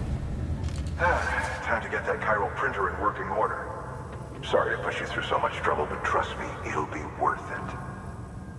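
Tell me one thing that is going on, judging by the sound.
A man speaks with animation.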